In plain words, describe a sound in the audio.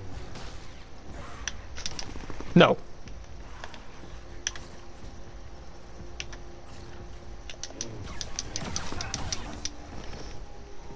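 A lightsaber clashes and sizzles in sharp bursts.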